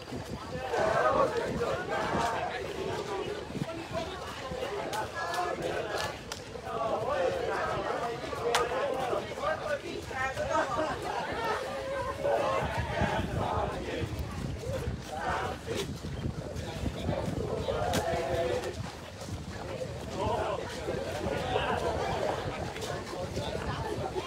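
A group of young men and women chant loudly together outdoors.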